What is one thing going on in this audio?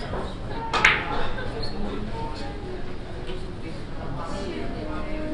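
Billiard balls clack against each other and thud off the cushions.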